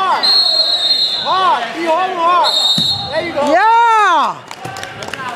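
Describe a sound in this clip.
Spectators shout and cheer loudly in an echoing hall.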